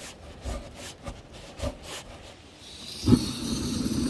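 A knife scrapes shavings off a stick of wood.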